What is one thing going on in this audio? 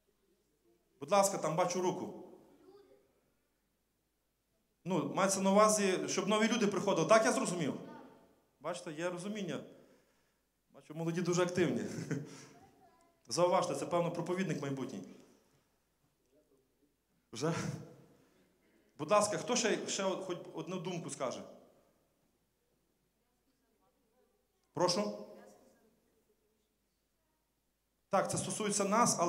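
A man speaks calmly into a microphone through loudspeakers, in a large echoing hall.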